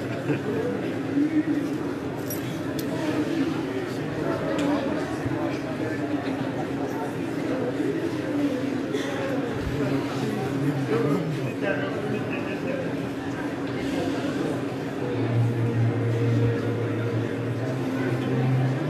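A large choir sings together in a big echoing hall.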